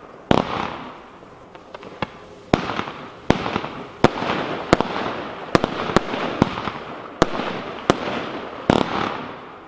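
Crackling stars sizzle and pop after the bursts.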